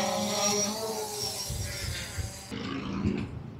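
A drone buzzes overhead.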